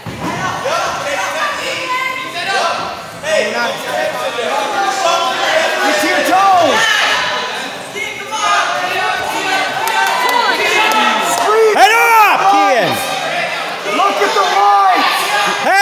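Wrestlers thud and scuffle on a mat.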